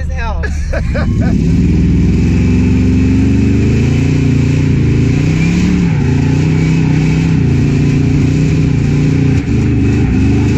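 A car engine revs loudly and roars.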